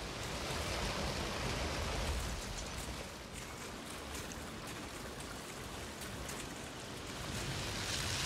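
Footsteps splash through shallow rushing water.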